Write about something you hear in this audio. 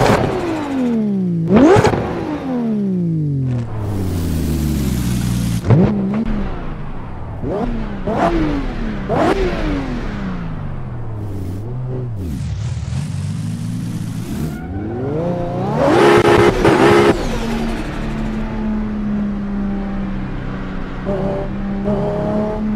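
A sports car engine revs hard, its pitch climbing and dropping sharply with each gear change.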